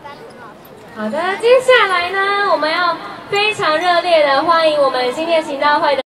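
A group of children sing together in a large echoing hall.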